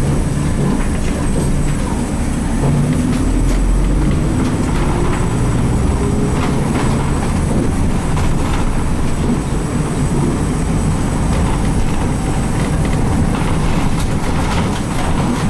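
The bus body rattles and creaks as it rolls over the road.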